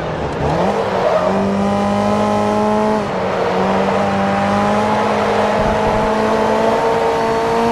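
Tyres squeal through a corner.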